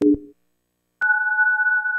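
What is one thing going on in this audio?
A steady high electronic tone sounds.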